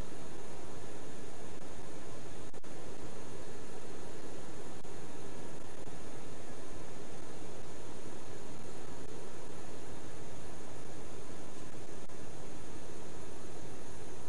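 Jet engines drone steadily inside an airliner cockpit.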